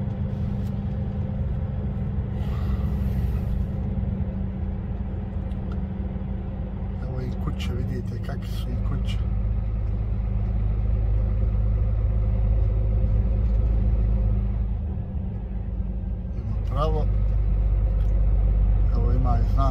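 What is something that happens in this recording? A heavy vehicle's engine rumbles steadily.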